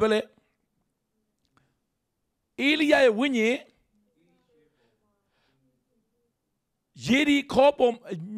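A middle-aged man sings passionately into a microphone, in short bursts with pauses.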